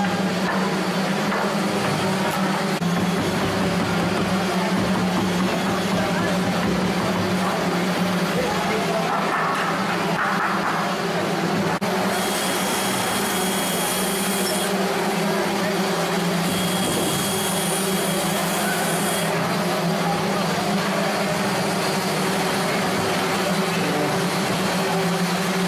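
Many people talk in a large echoing hall.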